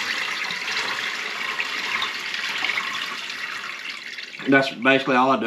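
Water pours from a jug into a colander over a pot.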